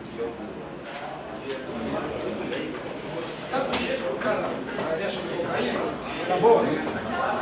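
A man speaks calmly into a microphone in a reverberant hall.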